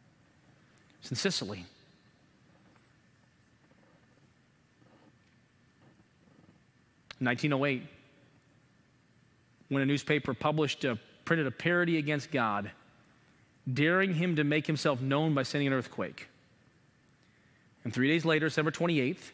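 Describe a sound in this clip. A man speaks calmly and with pauses through a microphone.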